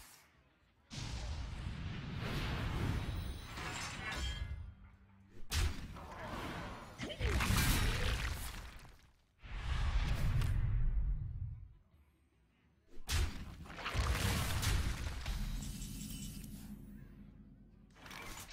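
Magical game sound effects whoosh and chime in short bursts.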